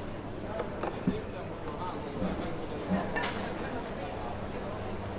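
Glass jars clink as a woman handles them.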